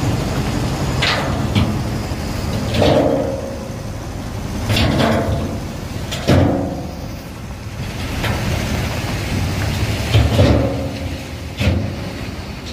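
Stones clatter and tumble down a pile of iron ore.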